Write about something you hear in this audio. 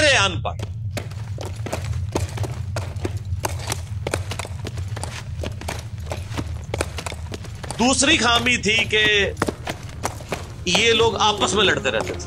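Horses' hooves clop on stone.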